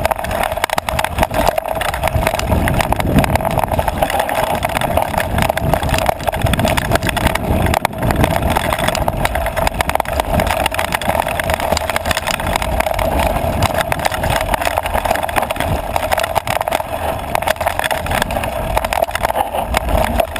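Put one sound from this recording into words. Bicycle tyres rattle and crunch over a rocky dirt trail.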